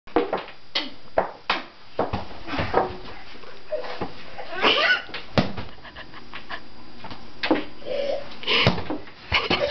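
A hockey stick clacks against a ball on the floor.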